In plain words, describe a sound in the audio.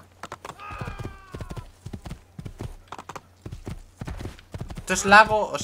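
Hooves thud rapidly as a horse gallops.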